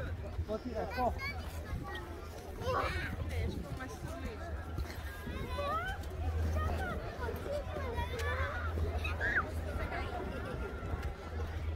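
Boots crunch on packed snow.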